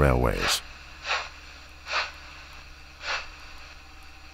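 A steam locomotive puffs slowly, with hissing bursts of steam.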